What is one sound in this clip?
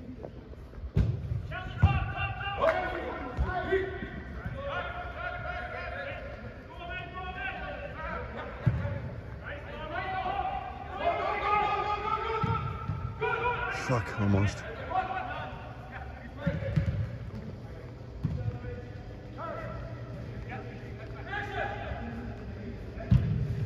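Men shout to each other across a large echoing indoor hall.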